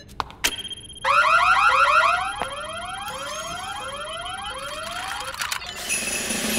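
A machine whirs with repeated rising electronic sweeps.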